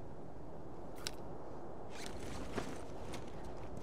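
Footsteps scuff on the ground.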